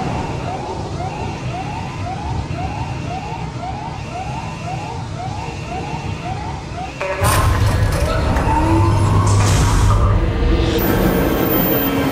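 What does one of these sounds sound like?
Steam hisses loudly from a vent.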